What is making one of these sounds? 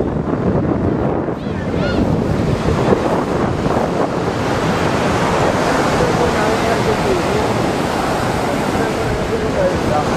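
Waves break and wash onto a shore.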